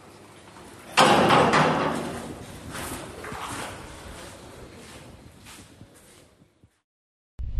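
A metal barred gate slams shut with a ringing clang that slowly fades.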